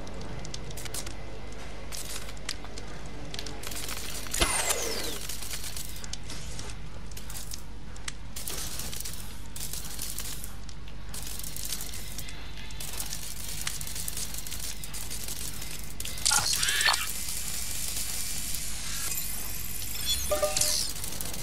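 A small robot's metal legs skitter and tap across a hard floor.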